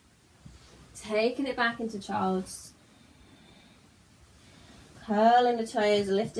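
A young woman speaks calmly, giving instructions close by.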